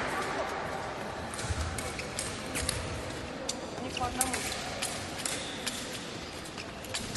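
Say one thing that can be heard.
Fencers' shoes squeak and thud on a hard floor.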